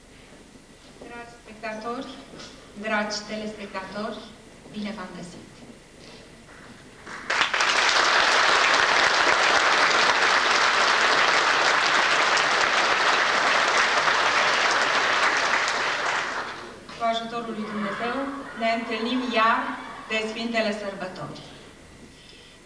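A middle-aged woman sings into a microphone.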